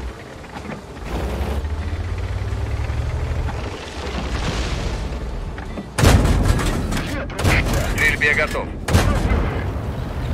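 Shells explode nearby with heavy blasts.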